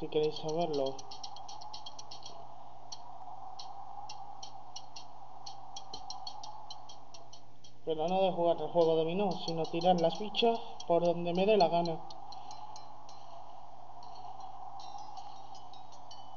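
Video game music plays from a small speaker.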